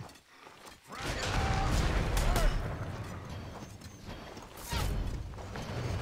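Magic blasts burst and crackle in a fight.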